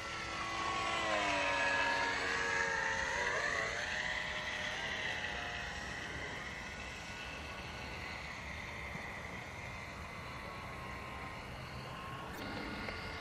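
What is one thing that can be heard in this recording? A small model plane's engine whines overhead, shifting in pitch as it passes and fading into the distance.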